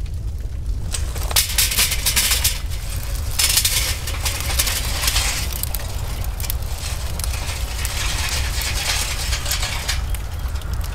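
Hot charcoal briquettes tumble and clatter into a metal grill.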